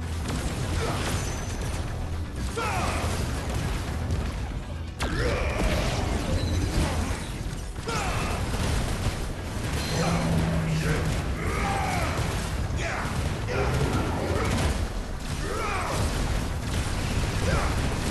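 Magic blasts crackle and boom in a fast fight.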